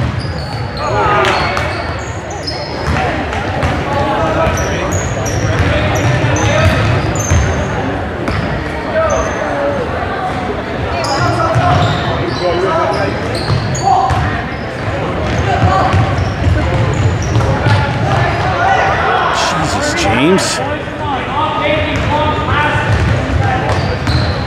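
Sneakers squeak sharply on a gym floor, many times.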